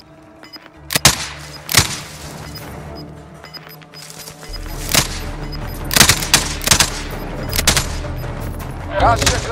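Rifle shots crack out sharply several times.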